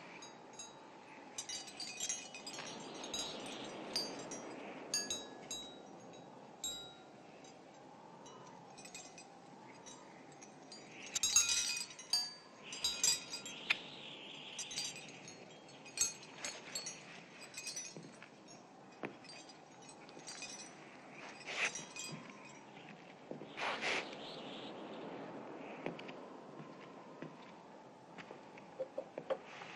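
A music box plays a light, tinkling tune.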